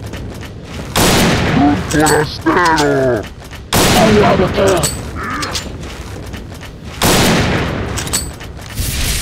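A rifle fires several loud, booming shots.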